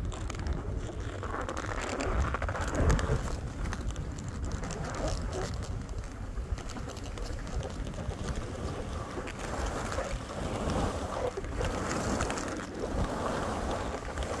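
Skis hiss and scrape over soft snow.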